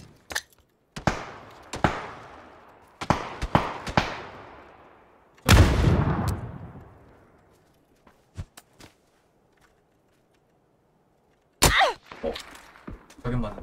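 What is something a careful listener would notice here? Gunshots crack one at a time and echo into the distance.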